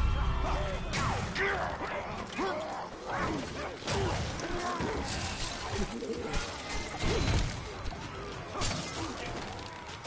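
Blades clash and slash in quick, sharp strikes.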